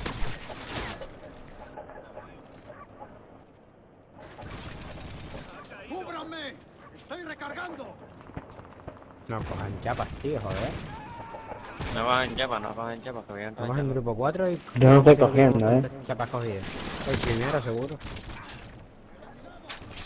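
Rapid gunfire bursts close by.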